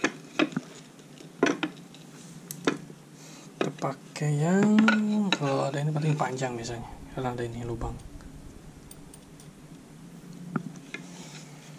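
Wooden boards knock and clack against each other.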